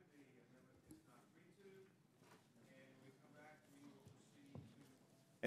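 A middle-aged man speaks firmly into a microphone.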